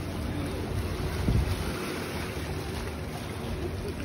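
Small waves lap and splash against rocks.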